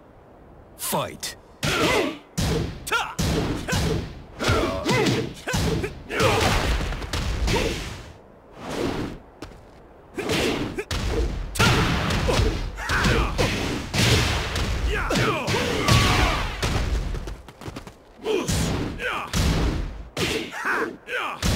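Punches and kicks land with sharp, heavy smacks.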